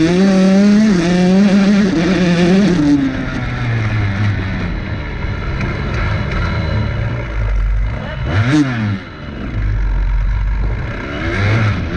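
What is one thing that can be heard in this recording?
Tall grass swishes against a motorbike.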